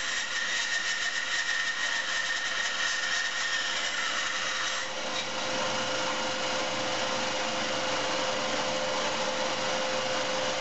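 A band saw runs with a steady hum and whine.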